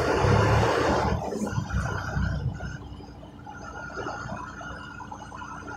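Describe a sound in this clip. A truck engine rumbles as the truck drives slowly across a paved lot.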